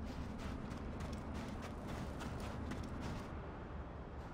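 Footsteps run quickly, splashing through shallow water.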